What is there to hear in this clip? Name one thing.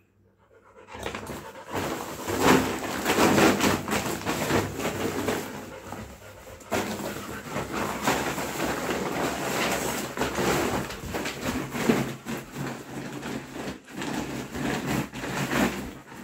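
A dog rustles and crinkles a plastic bag.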